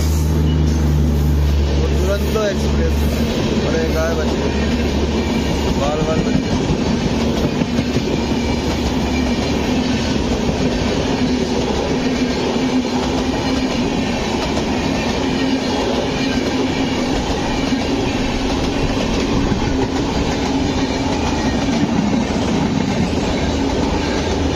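A passenger train rumbles past close by, its wheels clattering over the rails.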